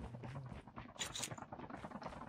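A short bright chime sounds as an item is picked up.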